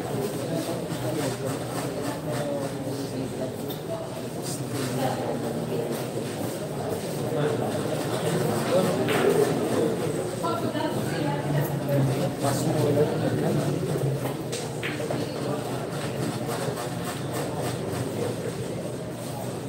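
A crowd of young people chatters in the background.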